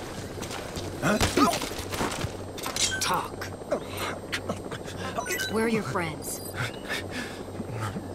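A man grunts and speaks in a strained, frightened voice close by.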